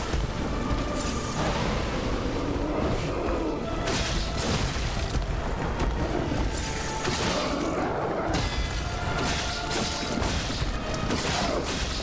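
A monster growls and roars.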